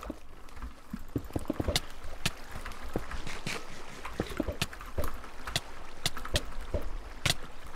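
Blocks crunch and thud as they are broken and placed in a game.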